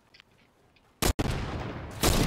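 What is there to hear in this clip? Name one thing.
A single loud rifle shot rings out.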